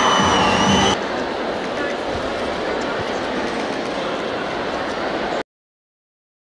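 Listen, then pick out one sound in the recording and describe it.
A crowd of people chatters loudly in a big echoing hall.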